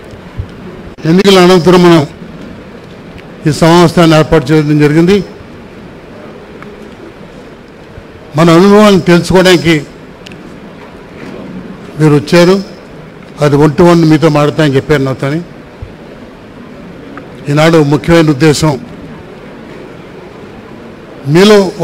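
An elderly man speaks forcefully into a microphone, in short bursts with pauses.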